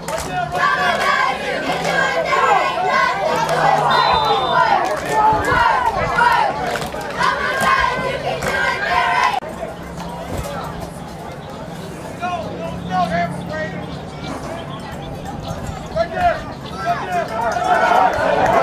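Football pads and helmets clash as players collide.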